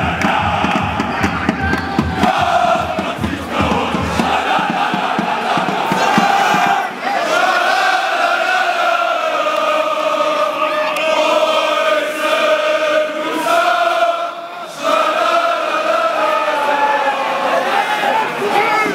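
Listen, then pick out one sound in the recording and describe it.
A large crowd of fans chants and sings loudly in unison.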